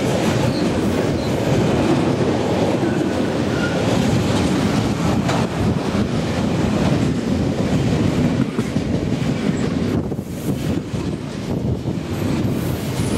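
A freight train rumbles past close by at speed.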